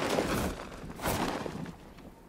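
A heavy thud sounds on landing.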